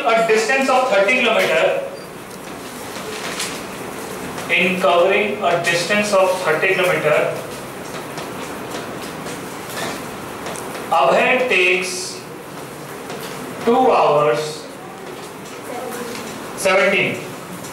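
A man speaks calmly through a headset microphone, in short phrases with pauses.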